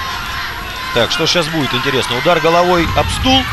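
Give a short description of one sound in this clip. A man shouts loudly nearby.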